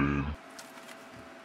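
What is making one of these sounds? A young man makes a short voiced sound close by.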